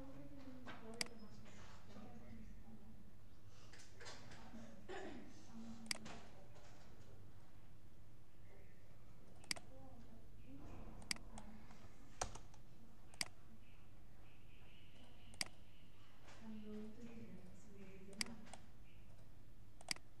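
A computer mouse clicks sharply now and then.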